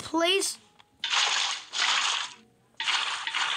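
Water pours and splashes.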